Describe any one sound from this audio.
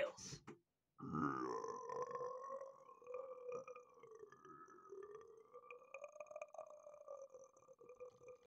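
A man blows into cupped hands, making a steady hooting whistle.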